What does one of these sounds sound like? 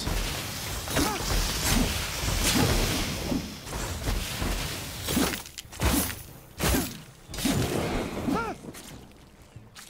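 A creature screeches and roars.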